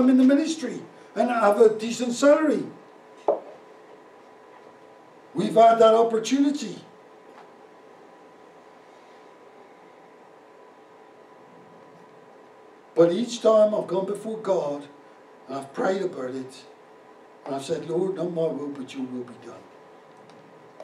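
An older man speaks calmly through a microphone, with long pauses.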